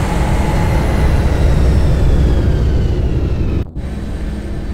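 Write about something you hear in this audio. A spaceship engine roars loudly overhead.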